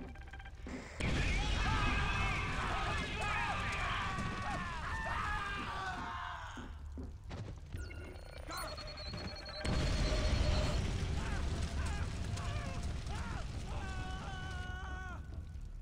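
Heavy gunfire rattles in bursts.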